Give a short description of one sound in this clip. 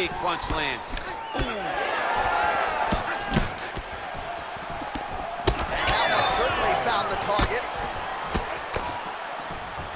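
A crowd cheers and murmurs in the background.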